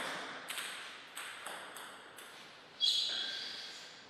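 A ping-pong ball bounces lightly on the table before a serve.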